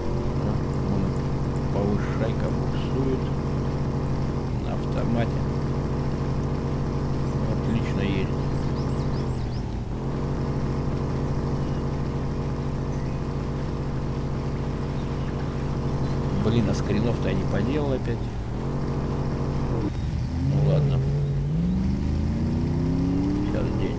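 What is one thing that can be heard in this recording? A car engine drones steadily and revs.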